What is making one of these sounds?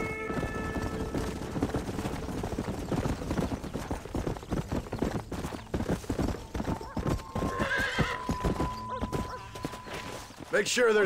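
Horse hooves gallop over a dirt track.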